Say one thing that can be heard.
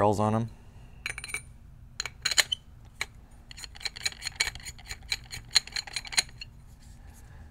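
Metal and plastic parts click and rattle as they are handled.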